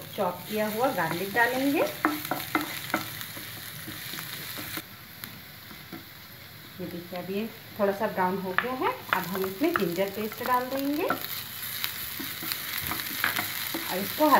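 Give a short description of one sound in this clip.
A wooden spatula scrapes and stirs in a frying pan.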